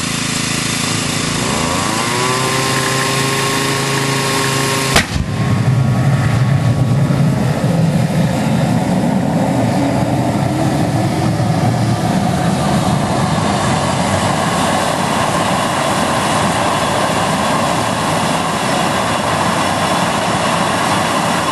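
A small jet turbine whines as it spins up.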